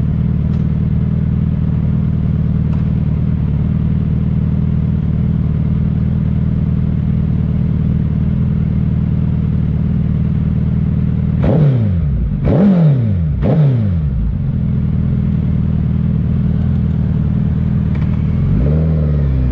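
A motorcycle engine idles with a steady low rumble close by.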